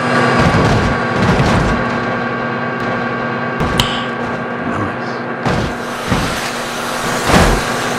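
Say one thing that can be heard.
A freight train rumbles and clatters along the tracks.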